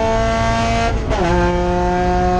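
A race car engine briefly cuts out during a gear shift.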